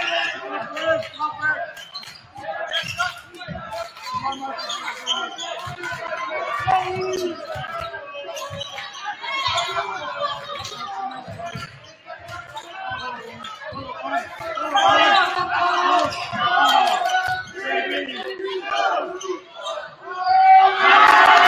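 A crowd of spectators chatters and cheers.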